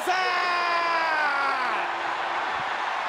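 A man shouts loudly with a drawn-out cry.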